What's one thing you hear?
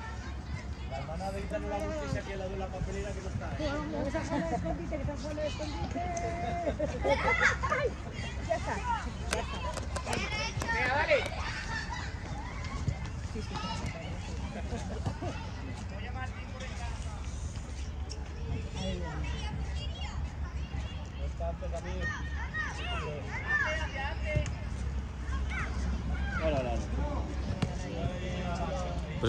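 Children shout and call out across an outdoor pitch.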